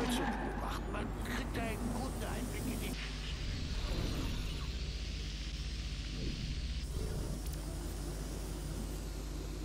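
A small drone's rotors hum steadily.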